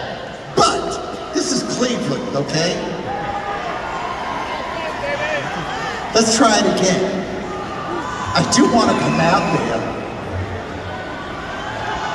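A man sings through a microphone and loudspeakers.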